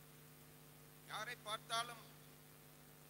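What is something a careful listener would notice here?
A middle-aged man speaks briefly through a microphone and loudspeakers.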